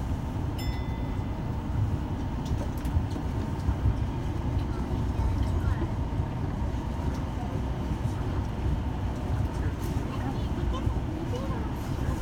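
Train wheels click and clack over rail joints.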